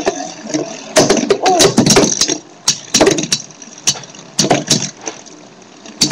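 A small plastic exercise wheel spins, rattling and clicking unevenly.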